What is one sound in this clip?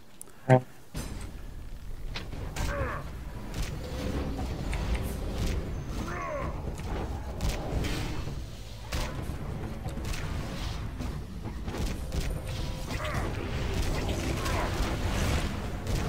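Weapon blows and magic spells crash and whoosh in a rapid fight.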